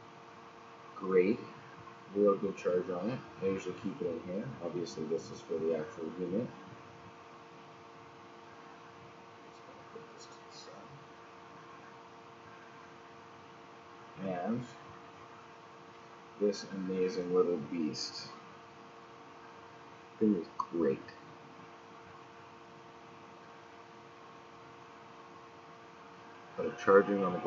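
A young man speaks calmly and close by, in short bursts.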